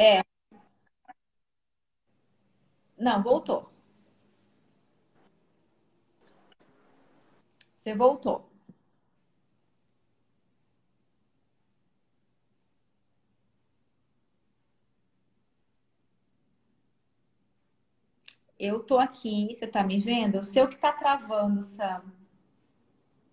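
A middle-aged woman speaks calmly over an online call, in short bursts with pauses.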